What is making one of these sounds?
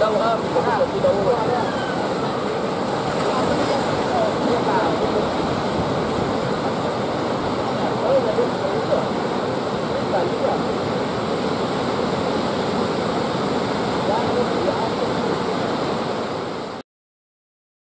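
Waves break and rush toward the shore.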